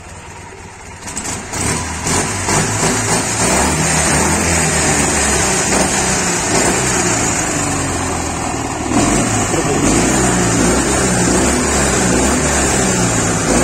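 A motorcycle engine starts and idles with a loud, uneven rumble.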